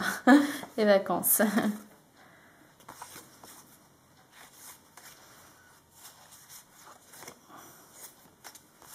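Paper cards rustle and slide against each other.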